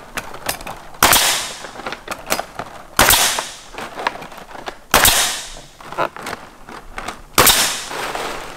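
A nail gun fires with loud, sharp bangs and a hiss of air.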